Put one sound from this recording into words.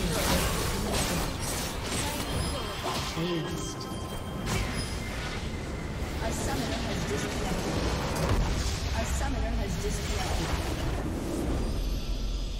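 Spells and weapons clash and crackle in a fast game battle.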